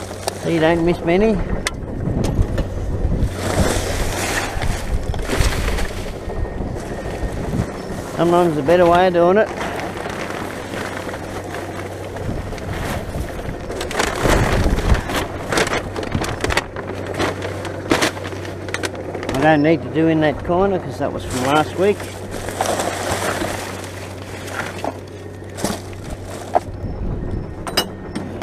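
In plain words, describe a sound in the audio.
Gloved hands rummage through rustling rubbish and plastic bags.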